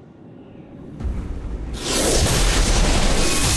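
A loud energy beam roars and crackles.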